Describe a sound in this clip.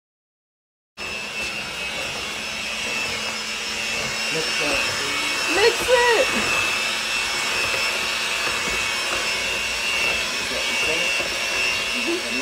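An electric hand mixer whirs steadily.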